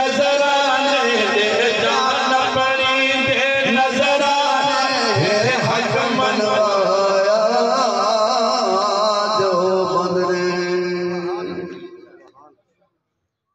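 A man chants in a long, melodic voice through a loudspeaker, heard outdoors.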